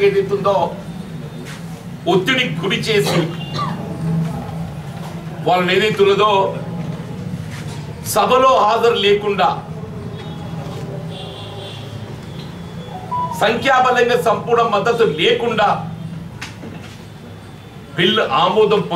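An elderly man speaks with animation close to a microphone, in bursts with short pauses.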